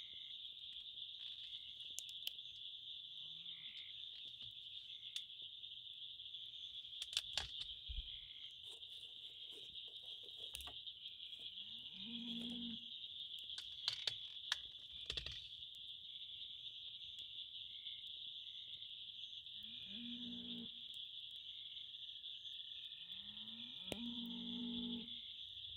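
A wood fire crackles and pops in a metal stove.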